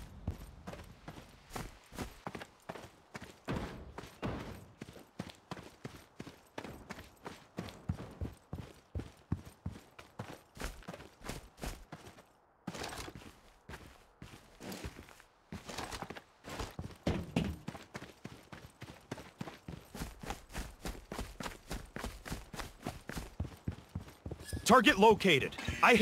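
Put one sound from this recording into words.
Footsteps run quickly and steadily over hard ground.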